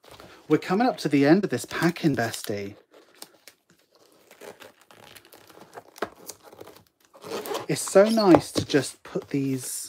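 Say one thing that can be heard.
Cardboard creases and rustles as a box is folded.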